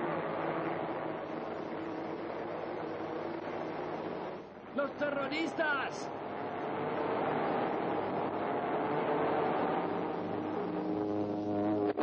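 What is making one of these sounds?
A rocket roars as it streaks past.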